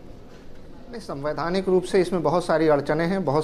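A man speaks clearly with animation through a microphone.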